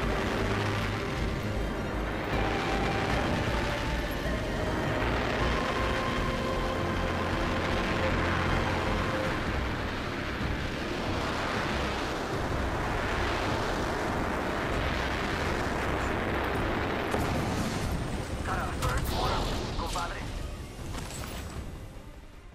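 Air rushes loudly and steadily during a fast fall, then fades.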